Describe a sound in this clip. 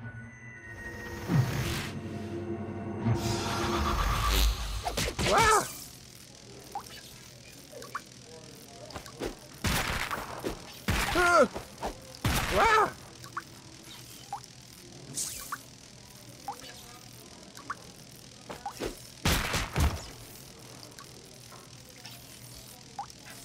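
Electricity crackles and zaps in sharp bursts.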